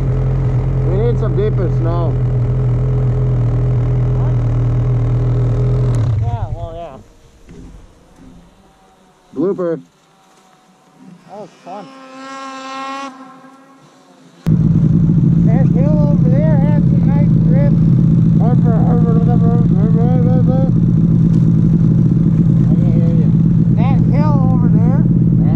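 A man talks loudly nearby, heard over the engine.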